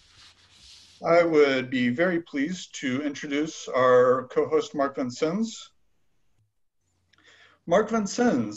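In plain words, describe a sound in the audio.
A man speaks calmly and clearly over an online call.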